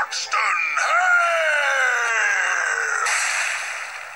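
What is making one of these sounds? A man shouts angrily, heard through a television speaker.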